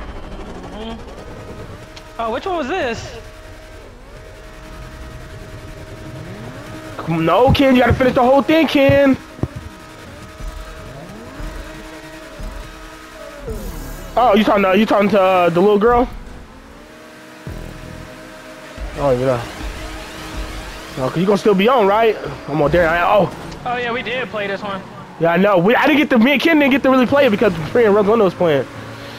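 A sports car engine revs and roars.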